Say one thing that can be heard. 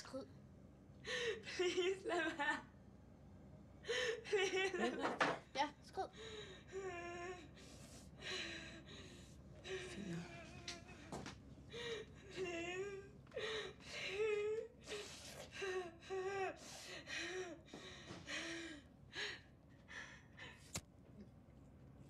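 A second young woman answers close by.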